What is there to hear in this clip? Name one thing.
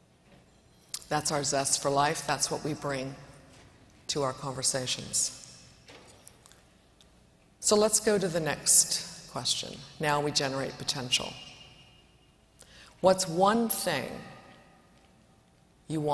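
A woman speaks calmly into a microphone, heard through loudspeakers.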